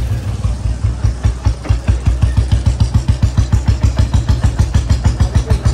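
A motorcycle engine thumps steadily and close by, with a deep, even beat that quickens.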